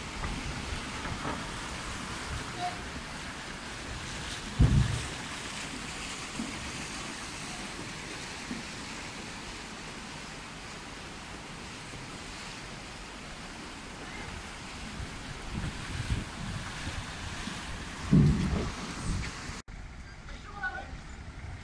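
A river flows and rushes steadily outdoors.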